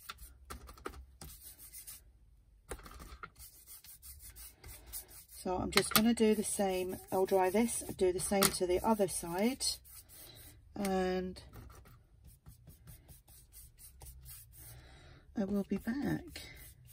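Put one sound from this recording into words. A brush swishes softly across paper.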